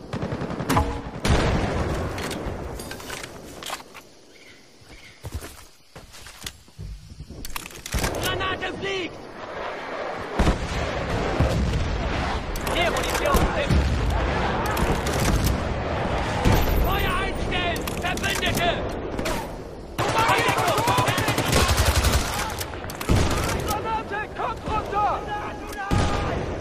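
Rifles fire in sharp rapid bursts.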